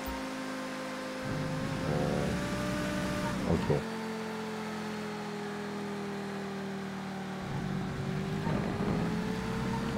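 A sports car engine hums steadily and rises in pitch as it speeds up.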